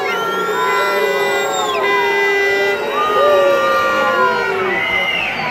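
A large crowd sings and chants loudly in an open stadium.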